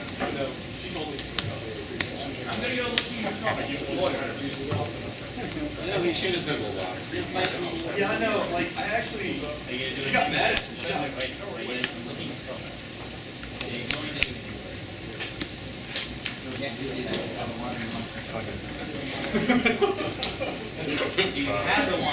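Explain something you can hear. Playing cards slap and slide softly onto a cloth mat.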